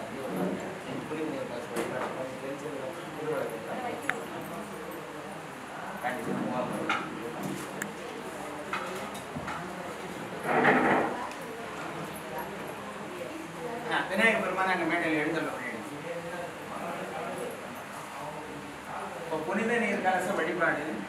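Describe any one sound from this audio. A crowd of men and women talk and murmur nearby indoors.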